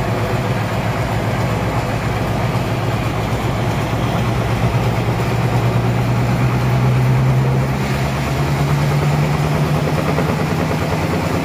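A large saw grinds through a wooden log.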